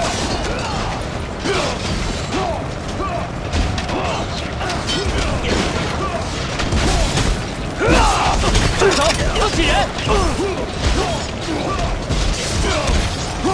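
Weapons clash and clang repeatedly.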